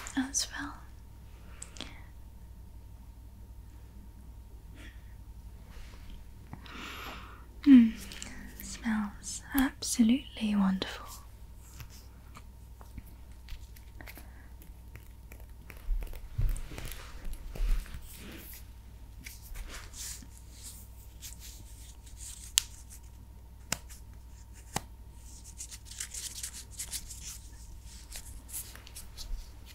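Fingers tap and scratch on a hollow container.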